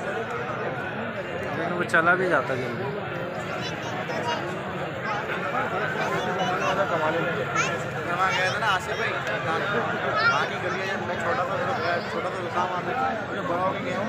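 A large crowd of men chatters loudly outdoors.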